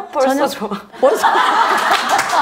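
An older woman laughs loudly.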